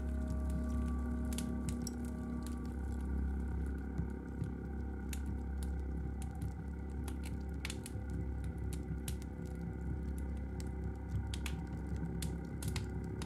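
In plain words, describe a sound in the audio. Electronic music plays with a deep steady bass drone.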